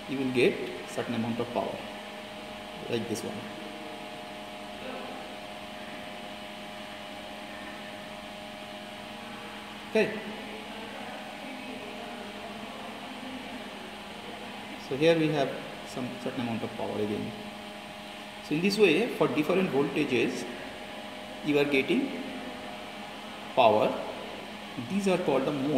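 A power supply hums steadily.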